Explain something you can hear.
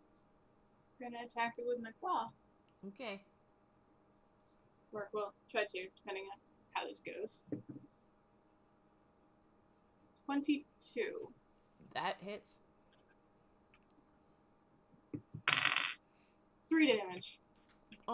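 A young woman talks over an online call through a headset microphone.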